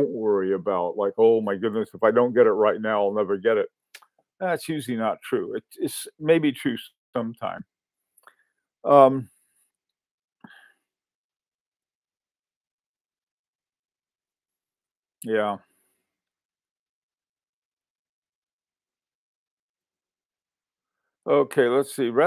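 An elderly man speaks calmly into a microphone, heard as if over an online call, with pauses.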